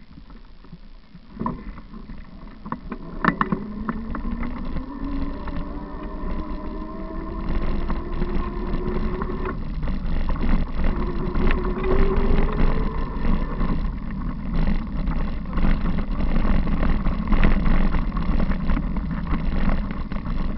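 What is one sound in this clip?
Bicycle tyres roll and crunch over a dirt path.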